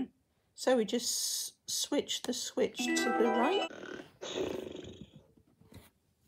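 A toy pony plays loud electronic neighing and chattering sounds.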